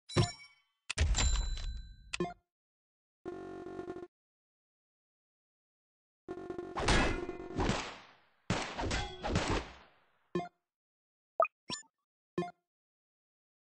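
Game sound effects chime and whoosh as units are placed and attack.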